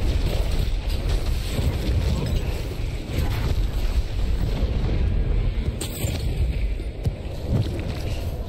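Heavy blows and thuds land in a fierce fight.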